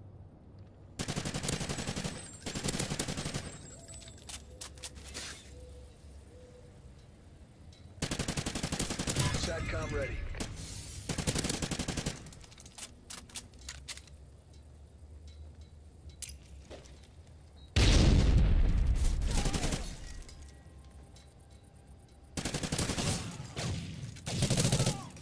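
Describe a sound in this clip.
Rapid gunfire rattles out in loud bursts.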